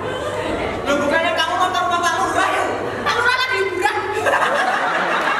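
A woman sings loudly.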